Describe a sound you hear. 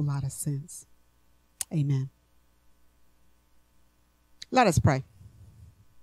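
An elderly woman speaks slowly and calmly into a microphone, with long pauses.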